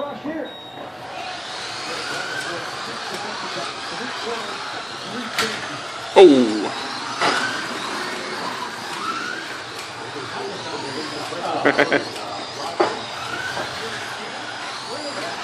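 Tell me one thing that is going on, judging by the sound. Slot cars whir and whine around a track, rising and falling in pitch as they pass.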